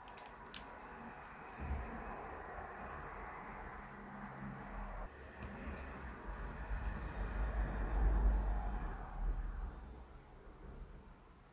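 Thick batter pours and plops softly into a pan.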